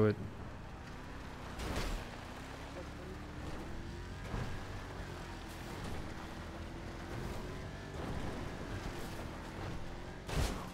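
A car engine hums steadily as an off-road vehicle drives.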